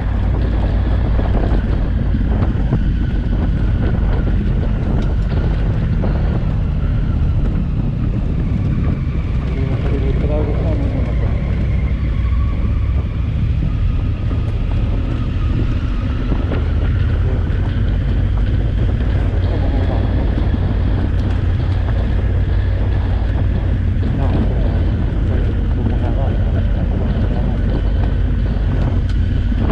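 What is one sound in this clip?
Tyres crunch and rattle over loose gravel.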